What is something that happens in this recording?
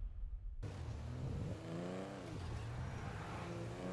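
A car engine hums as a car drives along a road.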